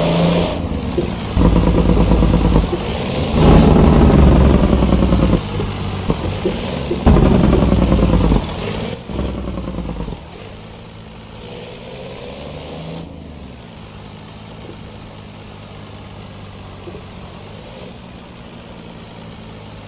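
A truck engine rumbles and revs loudly.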